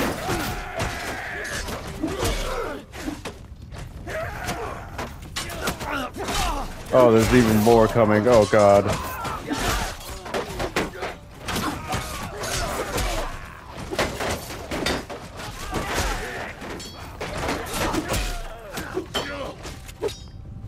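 Swords and shields clash and clang in a crowded melee.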